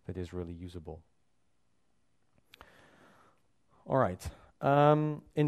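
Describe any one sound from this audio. A man speaks through a microphone in a large echoing hall, explaining calmly.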